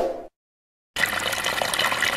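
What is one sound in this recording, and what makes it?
A stream of water splashes and gurgles over rocks.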